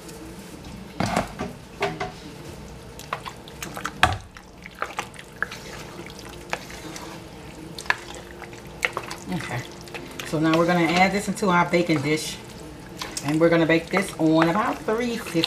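A spoon stirs thick, creamy pasta with soft, wet squelches and clicks.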